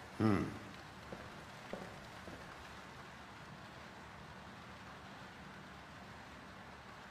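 A fire crackles softly in a fireplace.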